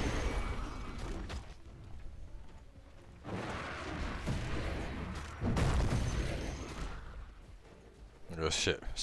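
Magic spells burst and whoosh in a fight.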